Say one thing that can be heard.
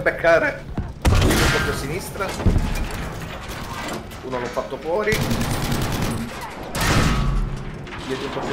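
A tank cannon fires with heavy booms.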